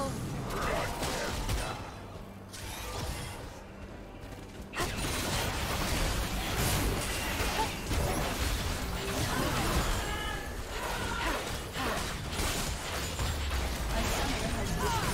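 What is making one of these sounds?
Magic spells whoosh, crackle and burst during a busy fight.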